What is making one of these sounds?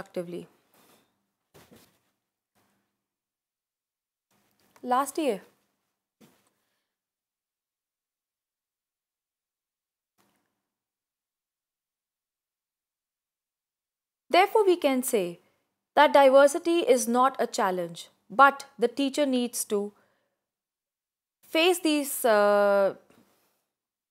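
A woman speaks calmly and clearly into a close microphone, with long pauses.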